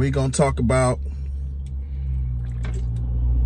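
A man sips a drink from a can.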